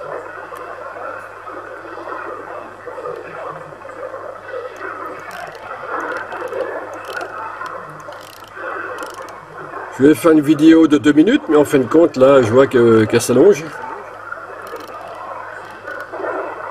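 Radio static hisses and warbles from a loudspeaker as the dial is tuned.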